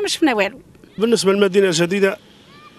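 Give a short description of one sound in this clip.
A middle-aged man speaks into a microphone outdoors.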